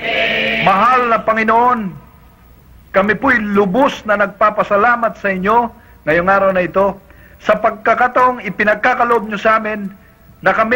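A man speaks fervently into a microphone.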